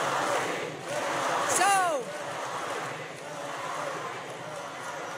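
A woman speaks through loudspeakers over the crowd.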